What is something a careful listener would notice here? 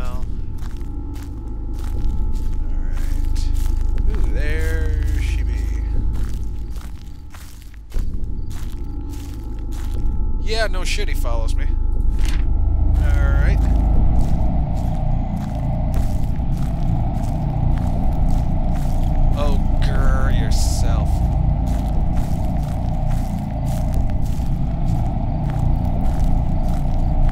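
Footsteps rustle through dry undergrowth at a steady walking pace.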